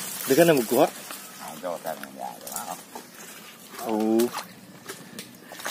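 Water splashes and trickles.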